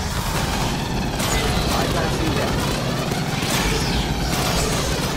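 A creature shrieks and hisses.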